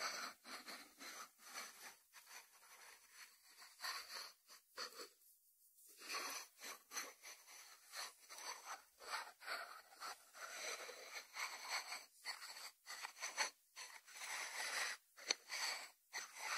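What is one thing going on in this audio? Fingertips tap on a ceramic lid.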